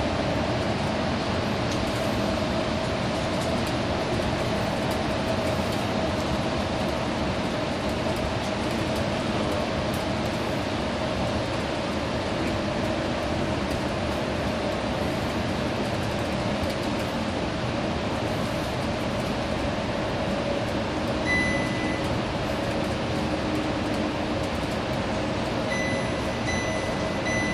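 A bus engine drones steadily while driving through a tunnel.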